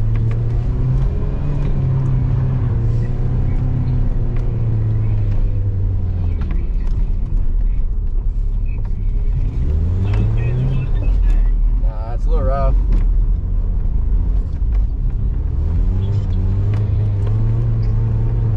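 Tyres crunch and slide over packed snow.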